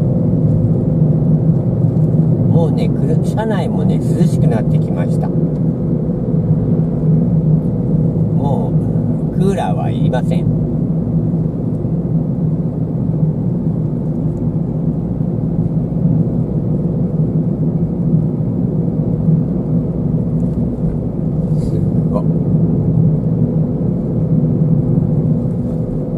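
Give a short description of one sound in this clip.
Tyres roll on smooth asphalt.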